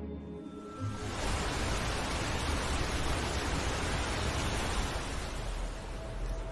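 Wind gusts loudly outdoors.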